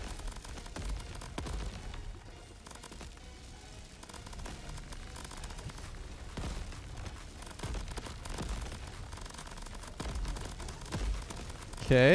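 Explosions thump heavily again and again.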